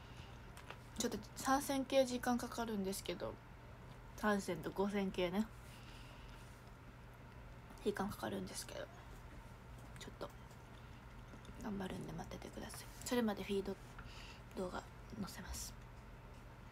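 A young woman talks casually and close up, in short bursts.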